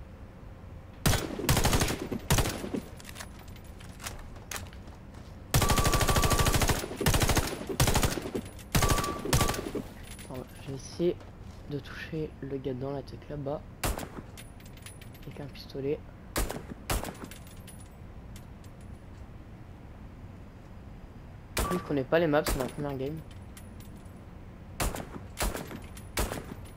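Rapid gunshots fire in bursts, ringing out in an echoing room.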